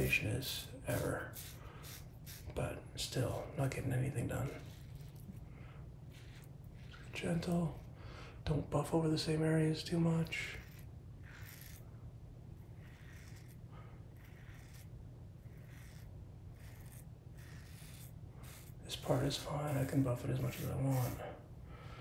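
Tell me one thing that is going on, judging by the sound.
A razor scrapes over stubble.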